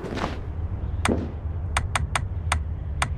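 Short menu clicks sound several times in quick succession.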